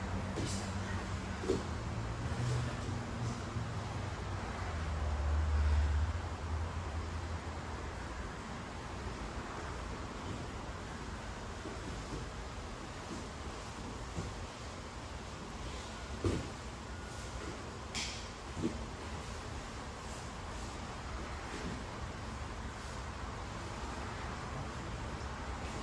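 Bodies thump and shuffle on padded mats.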